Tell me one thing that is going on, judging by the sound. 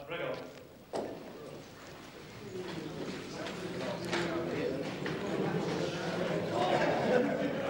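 A crowd of men chatter.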